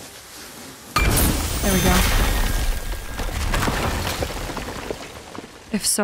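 A loud fiery blast bursts and crackles.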